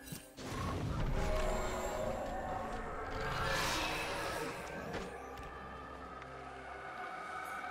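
Video game sound effects of spells and attacks play.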